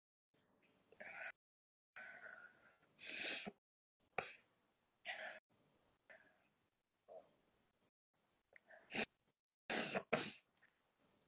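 A young woman sobs and sniffles.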